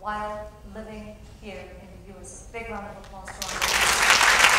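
A woman speaks into a microphone over a loudspeaker in an echoing hall.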